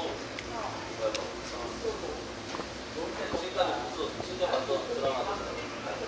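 A young man gulps a drink.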